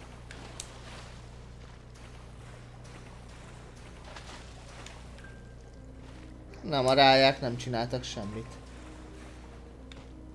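Water splashes as a figure swims.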